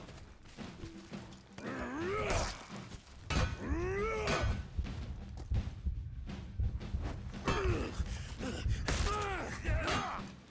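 Steel blades clash and strike in a close fight.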